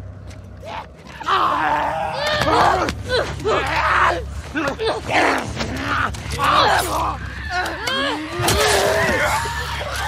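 A creature snarls and shrieks close by.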